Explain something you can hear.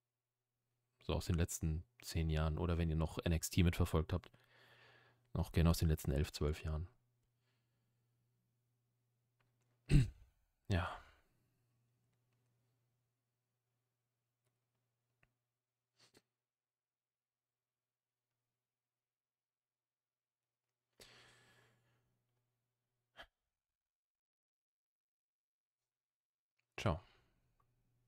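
A young man speaks calmly and close to a microphone, in short bursts with long pauses.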